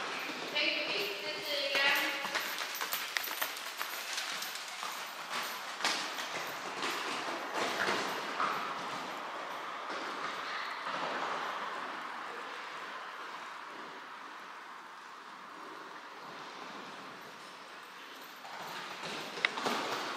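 Horse hooves thud on soft sand in a large echoing hall.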